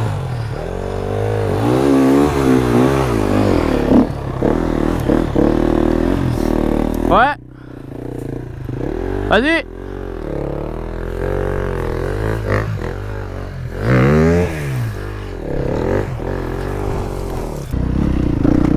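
An enduro dirt bike engine revs hard while climbing a steep slope.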